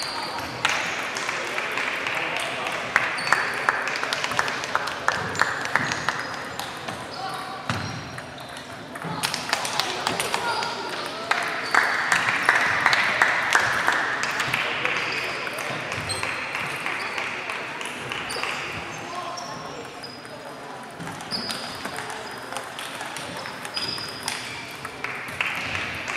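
Table tennis balls tick and bounce on tables in a large echoing hall.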